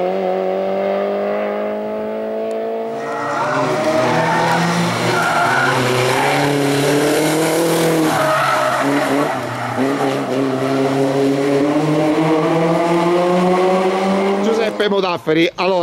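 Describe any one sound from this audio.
A race car engine roars and revs as the car accelerates.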